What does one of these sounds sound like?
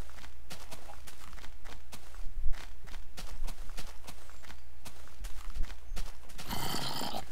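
Footsteps crunch softly through grass.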